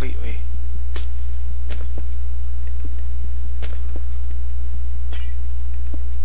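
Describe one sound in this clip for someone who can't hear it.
Pickaxe blows crack stone blocks, one after another.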